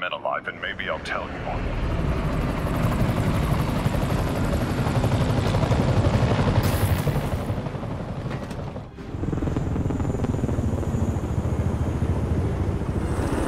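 A helicopter roars overhead with whirring blades.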